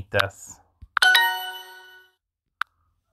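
A bright chime rings out and fades.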